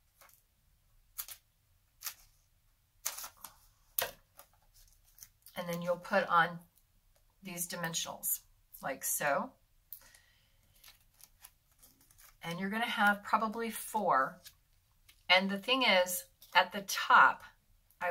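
Paper rustles and taps under hands.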